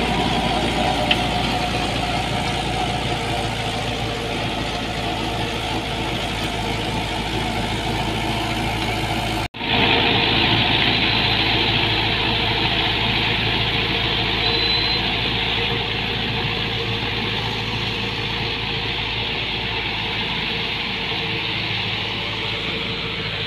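A rotary tiller churns through soil.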